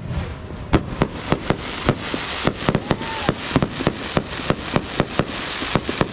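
Fireworks crackle rapidly as they burst.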